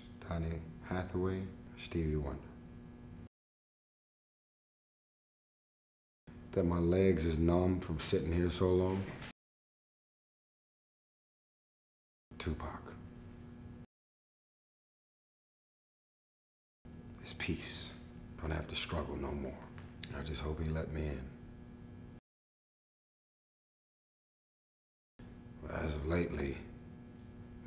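A man speaks calmly and closely into a microphone, in short answers broken by silences.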